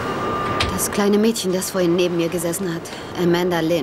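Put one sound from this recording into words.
A woman speaks urgently, close by.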